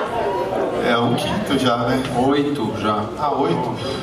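A second man talks into a microphone.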